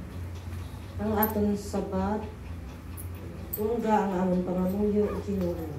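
A woman reads out into a microphone, heard through a loudspeaker.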